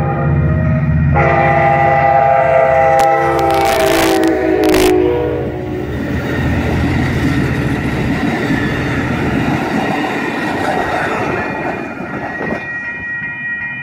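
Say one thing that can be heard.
A passenger train rumbles and clatters past close by.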